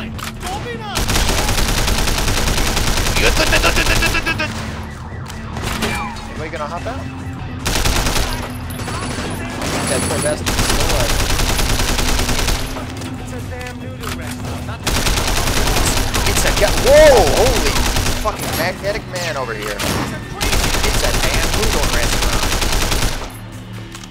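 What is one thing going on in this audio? Rapid gunfire rattles in loud bursts.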